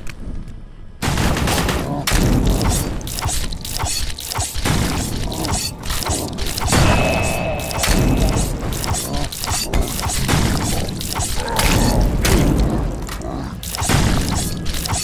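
Heavy blows strike flesh with wet thuds.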